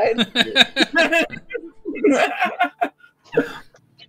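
A woman laughs over an online call.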